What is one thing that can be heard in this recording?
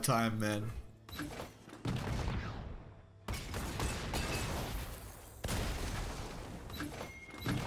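Magical whooshing sound effects play.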